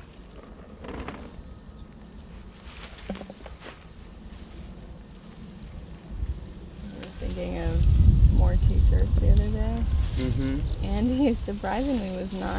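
Leaves rustle as hands pick grapes from a vine.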